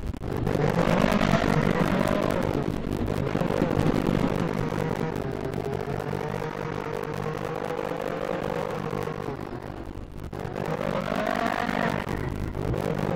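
A car engine roars and revs, its pitch rising and falling with speed.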